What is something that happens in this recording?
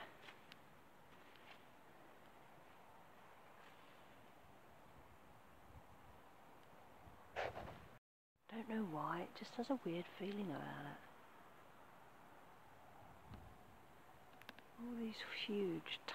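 Wind blows softly across open ground.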